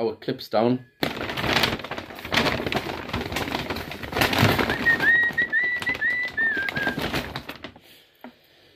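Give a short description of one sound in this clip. Clothing rustles loudly against the microphone.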